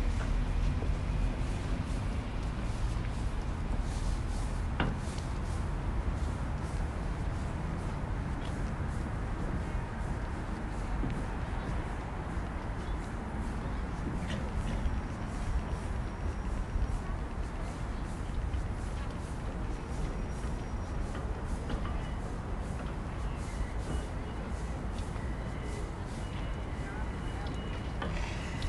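Footsteps tap steadily on a hard walkway outdoors.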